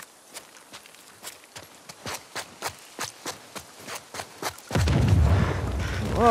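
Footsteps thud on stone stairs at a steady pace.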